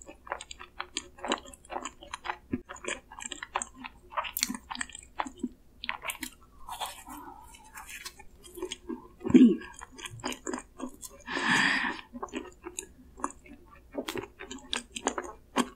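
A young woman chews soft pastry with close, wet mouth sounds.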